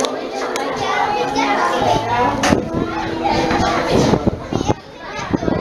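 Children and adults chatter nearby.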